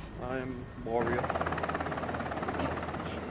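Helicopter rotor blades chop steadily overhead.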